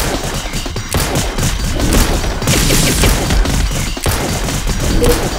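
Rapid zapping and hit sound effects crackle.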